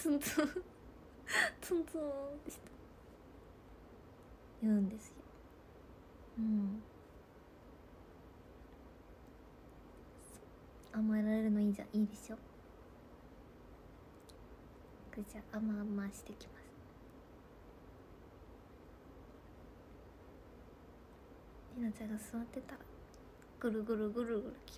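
A young woman talks softly and casually close to a microphone, with pauses.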